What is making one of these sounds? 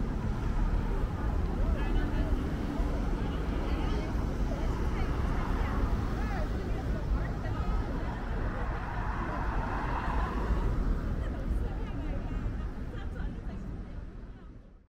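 City traffic hums and rumbles steadily outdoors.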